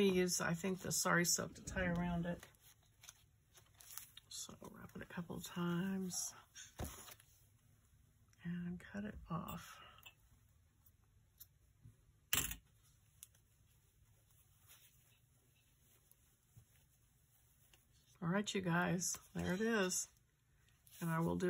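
Paper and card rustle and tap as hands handle a small handmade book.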